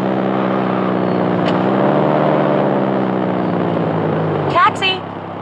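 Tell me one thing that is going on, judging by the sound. A car engine hums steadily at a low pitch.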